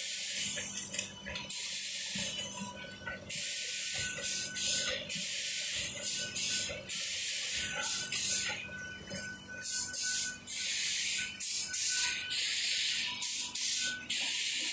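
An industrial machine runs with a loud, steady hiss and clatter.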